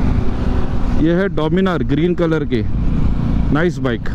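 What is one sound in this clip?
A nearby motorcycle engine revs up and down repeatedly.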